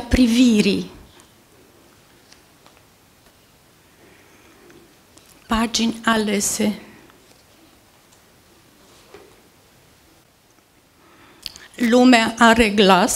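An elderly woman speaks with animation into a microphone, with pauses between phrases.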